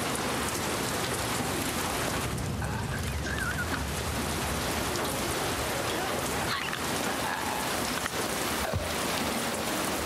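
A creature growls and shrieks nearby.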